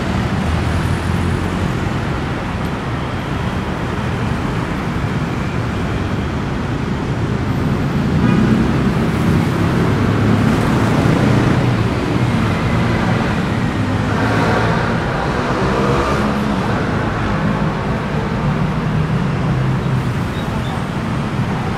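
Motorbikes and cars rumble past steadily on a busy city street.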